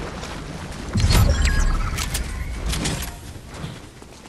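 A chime rings out as a reward is collected.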